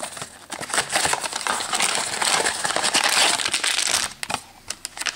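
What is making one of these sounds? Paper rips and rustles as a wrapper is torn open.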